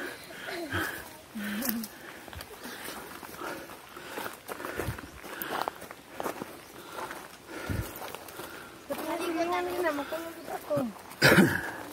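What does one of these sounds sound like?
A young girl calls out excitedly close by.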